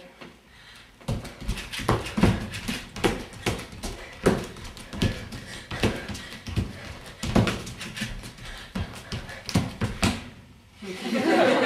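Feet thump on a wooden floor as a woman dances.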